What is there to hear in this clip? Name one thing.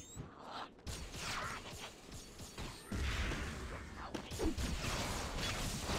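A weapon fires a rapid burst of shots.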